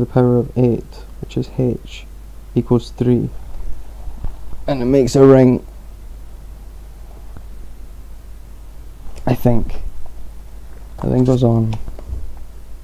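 A man talks calmly, close to the microphone, in short bursts.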